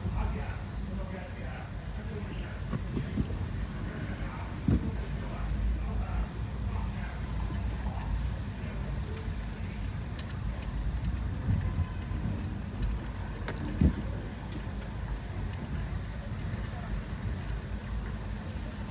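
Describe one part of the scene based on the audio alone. Tyres rumble and bump over a rough road.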